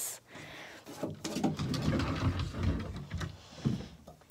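A hand brushes and rubs against a wall.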